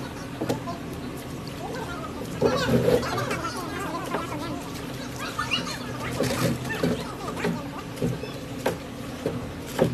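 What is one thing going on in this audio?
Water splashes as hands sift gravel in a trough.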